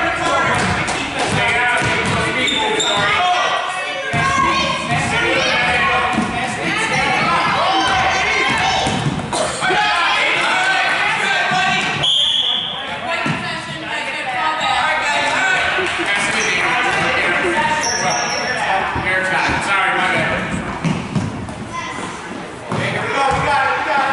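Adults and children shout and cheer throughout a large echoing gym.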